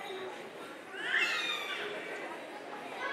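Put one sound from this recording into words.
A young girl speaks loudly and clearly.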